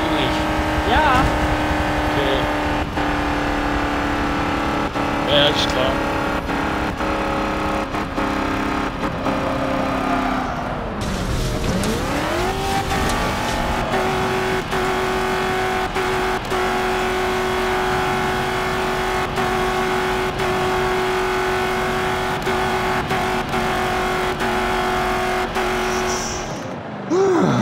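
A racing car engine roars steadily, dipping in pitch as it shifts gears.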